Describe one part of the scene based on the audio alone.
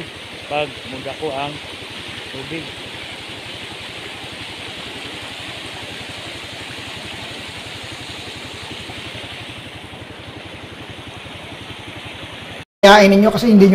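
Shallow water rushes and trickles steadily over a road.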